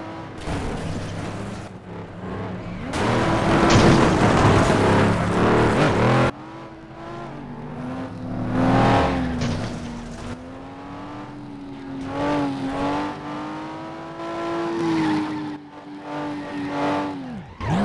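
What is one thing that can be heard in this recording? Tyres screech as cars slide around corners.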